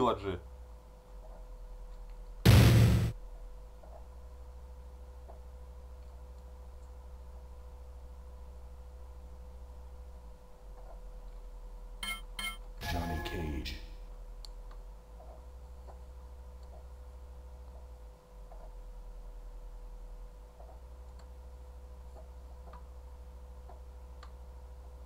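A video game plays a low, steady droning tune.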